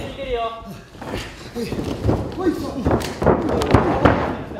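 Bodies and feet thud heavily on a springy ring mat.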